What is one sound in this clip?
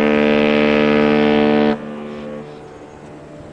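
A ship's horn blasts loudly with a deep tone, then cuts off and echoes away.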